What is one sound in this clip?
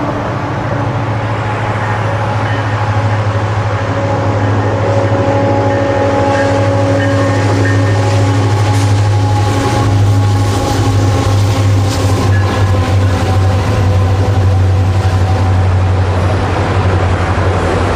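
A freight train's diesel engines rumble loudly and steadily.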